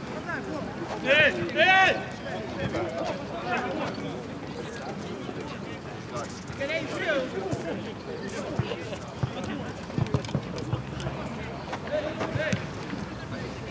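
Young men shout to each other across an open field, some distance away.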